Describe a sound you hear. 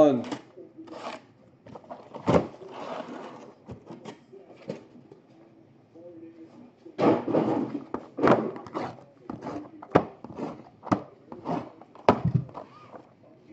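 Cardboard boxes knock and clatter against each other as they are stacked and handled.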